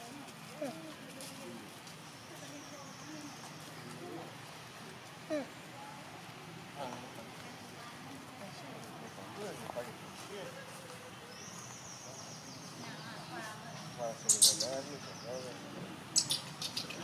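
A baby monkey squeaks and chirps.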